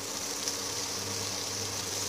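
A spatula scrapes around a pot.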